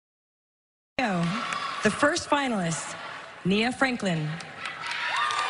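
A woman announces loudly through a microphone in a large echoing hall.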